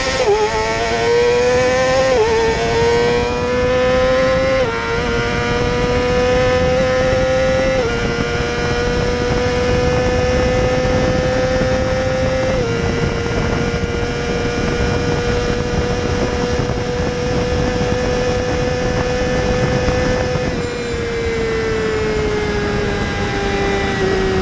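A motorcycle engine screams at high revs, climbing through the gears.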